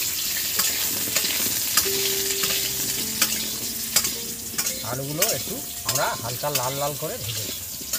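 Oil sizzles as food fries in a pan.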